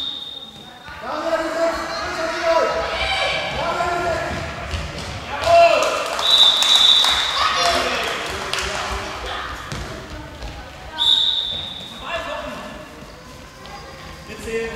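Sneakers squeak on a hard indoor floor in an echoing hall.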